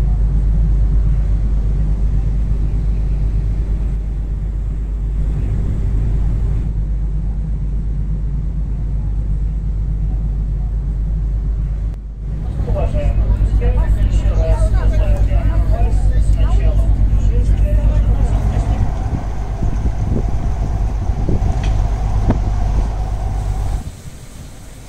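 Wind rumbles loudly against the microphone outdoors.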